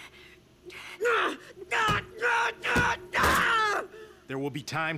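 A young man speaks with strain, then cries out.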